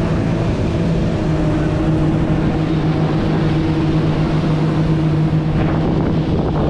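A motorboat's engine drones steadily while cruising.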